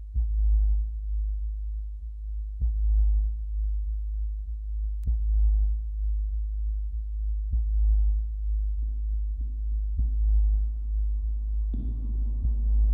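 A band plays slow, droning music with a deep boom every few seconds through loud speakers.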